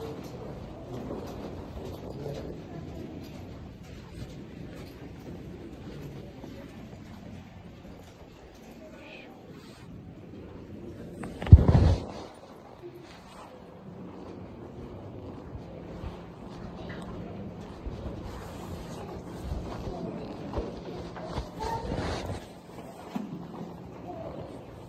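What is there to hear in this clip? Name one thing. A crowd of people murmurs quietly in a large echoing room.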